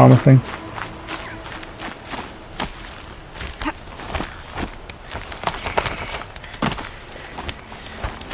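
Hands and feet scrape and knock against rock during a climb.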